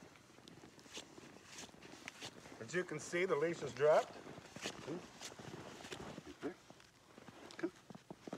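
Boots crunch on packed snow.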